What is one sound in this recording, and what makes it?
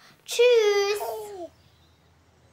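A young girl calls out happily close by.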